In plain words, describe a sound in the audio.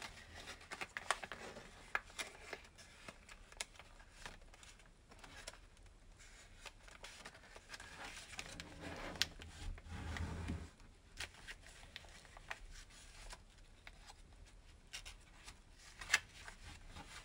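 Fingers press and crease paper with soft taps.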